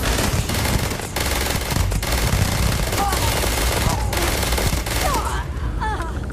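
An automatic rifle fires rapid bursts of loud shots.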